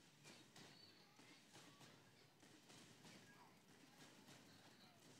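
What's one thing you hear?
Guns fire and small explosions burst in quick succession.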